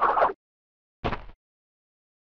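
A soft landing thud sounds.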